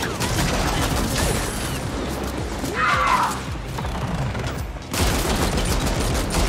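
Rapid laser gunfire crackles and zaps.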